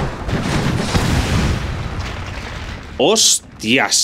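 Swords clash and spells burst in a battle.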